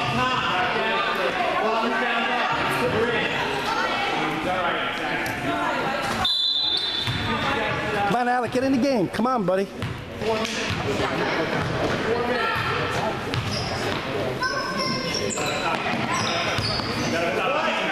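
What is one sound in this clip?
Young children shout and call out in a large echoing hall.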